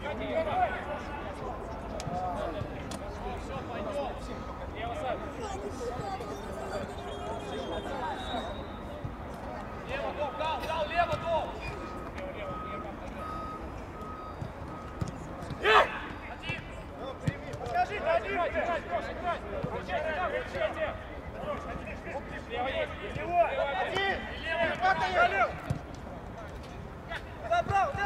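Men shout to each other across an open pitch outdoors.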